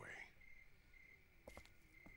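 Footsteps tap slowly on hard ground.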